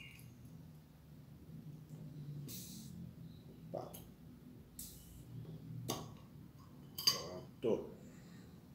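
A man pries the cap off a glass bottle with clicks and a pop.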